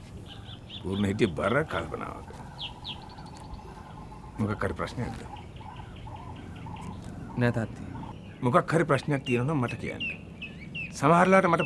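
An older man speaks in a low, serious voice nearby.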